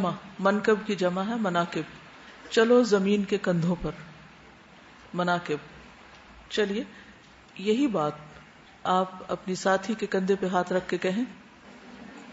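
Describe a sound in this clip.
A woman speaks calmly and closely into a microphone.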